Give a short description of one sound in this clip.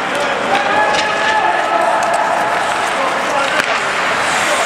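Hockey sticks click against the puck.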